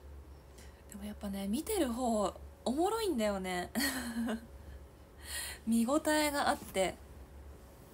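A young woman speaks brightly close to a microphone.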